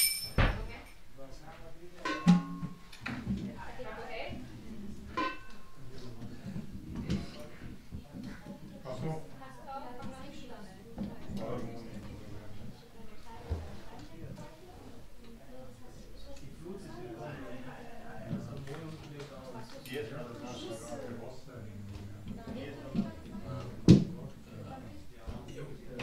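Men and women talk quietly nearby.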